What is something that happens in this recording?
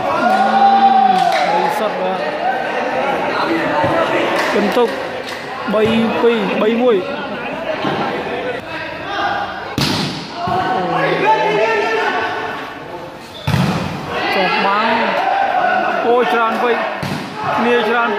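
A crowd of men chatters and calls out, echoing in a large hall.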